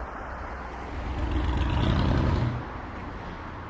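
A scooter passes close by with a loud roar.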